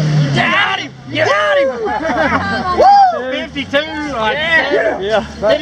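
Men in a crowd nearby shout and cheer.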